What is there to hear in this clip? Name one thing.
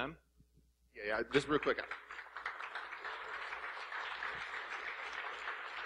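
An audience applauds and cheers throughout the hall.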